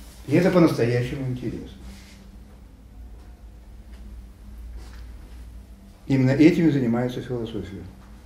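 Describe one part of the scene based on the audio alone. A middle-aged man speaks with animation in a room with slight echo.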